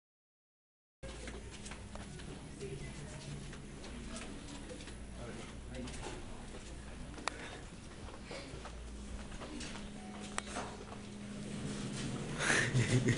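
Footsteps pad softly along a carpeted hallway.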